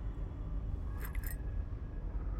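A small glass ornament clinks sharply as it is picked up from a hard floor.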